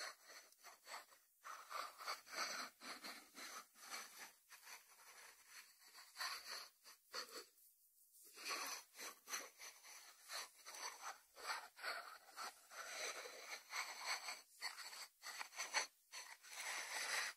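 Fingertips tap and brush on a ceramic lid.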